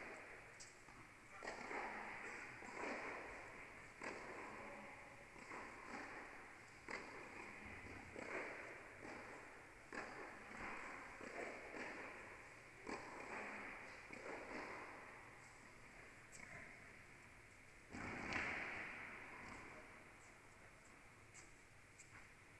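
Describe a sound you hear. Tennis balls are struck with rackets in a large echoing hall.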